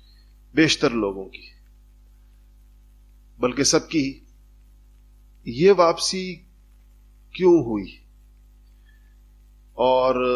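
A man speaks calmly into a microphone in short phrases with pauses.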